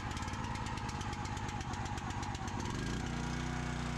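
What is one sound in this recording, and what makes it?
A small petrol engine sputters and turns over rapidly.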